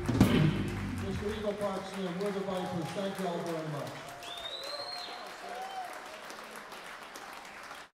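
A man sings into a microphone over a sound system.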